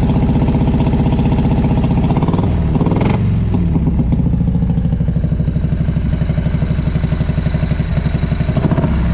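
A motorcycle engine idles with a deep, steady, loping rumble.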